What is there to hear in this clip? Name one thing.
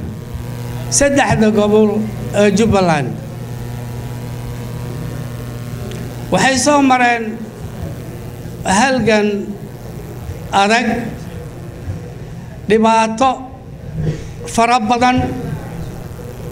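An elderly man sings out loud phrases into a microphone, heard through loudspeakers in an echoing hall.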